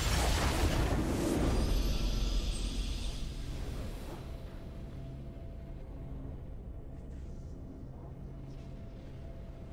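A bright game fanfare rings out for a victory.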